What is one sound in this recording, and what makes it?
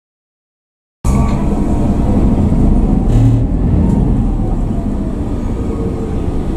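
An engine rumbles steadily from inside a moving vehicle.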